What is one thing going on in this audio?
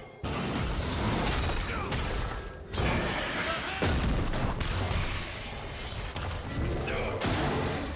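Game spell effects and weapon hits crash and clang in a busy fight.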